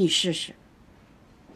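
An elderly woman speaks briefly close by.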